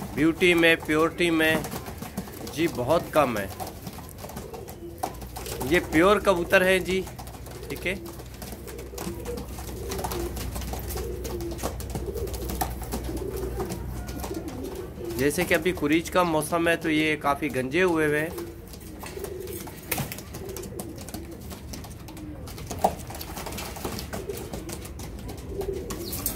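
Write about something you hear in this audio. Pigeons coo softly and steadily close by.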